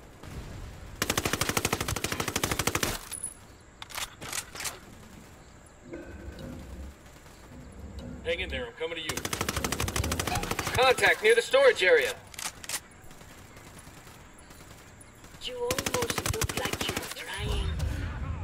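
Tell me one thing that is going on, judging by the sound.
A rifle fires rapid bursts of automatic fire.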